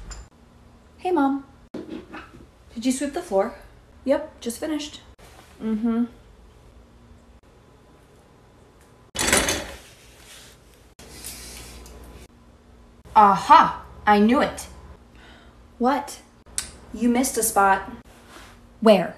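A young woman speaks expressively close by.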